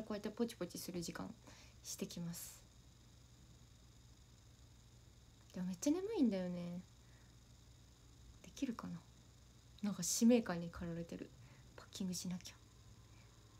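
A young woman speaks casually and close by, in short bursts with pauses.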